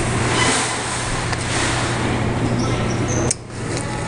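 A bill acceptor whirs as it pulls in a banknote.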